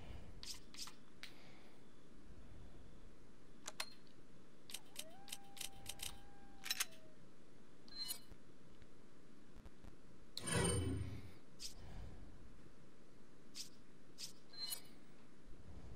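Short menu clicks and beeps sound now and then.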